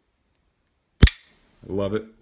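A folding knife blade snaps open with a sharp click.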